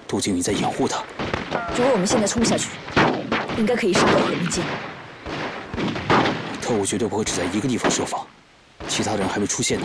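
A young man speaks in a low, serious voice.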